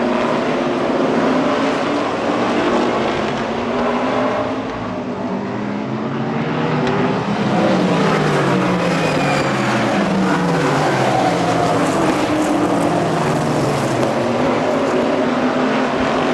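Racing engines roar loudly outdoors.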